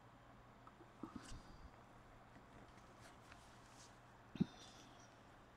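Hands handle a hollow plastic form with soft knocks.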